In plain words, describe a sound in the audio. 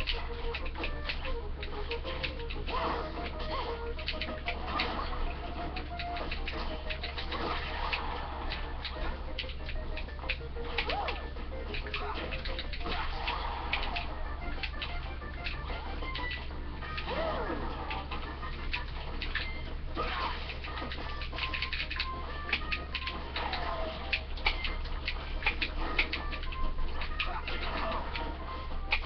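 Video game fighting sounds hit and whoosh in quick bursts.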